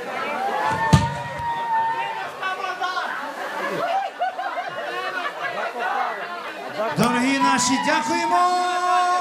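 A crowd of young men and women shouts and cheers loudly nearby.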